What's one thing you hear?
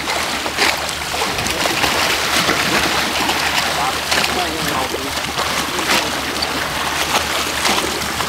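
Water churns and sloshes steadily.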